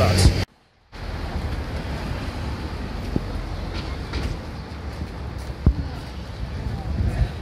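A crowd murmurs and chatters outdoors in light wind.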